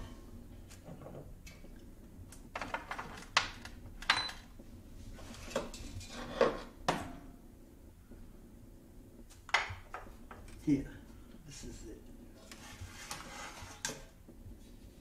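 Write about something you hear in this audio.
Small objects clink and knock against glass shelves.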